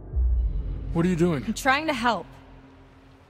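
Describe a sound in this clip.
A young woman speaks tensely up close.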